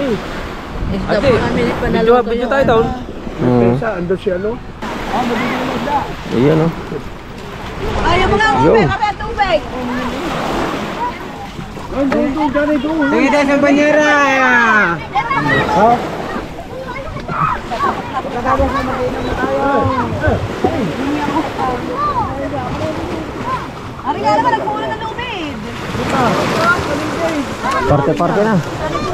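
Several men and women talk and call out to each other close by.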